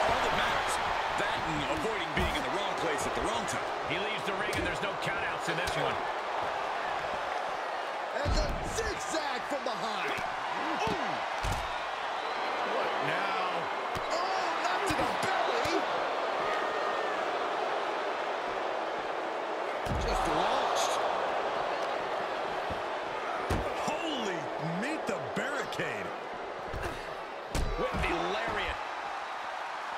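An arena crowd cheers and roars throughout.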